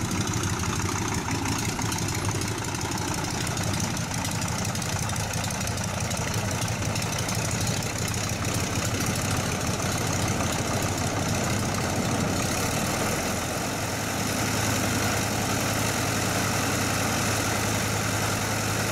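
A propeller plane's engine rumbles and drones steadily nearby, growing louder as it turns.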